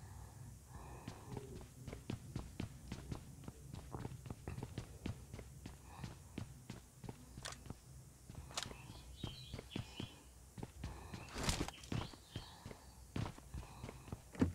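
Footsteps run across a wooden floor.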